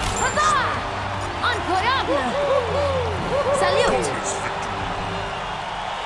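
Game sound effects whoosh during a battle.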